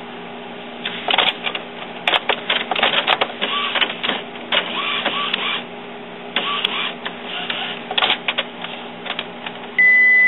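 A printer whirs and clicks as its mechanism moves.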